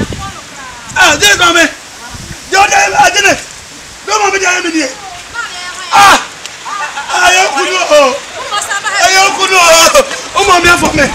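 A man shouts loudly and excitedly close by.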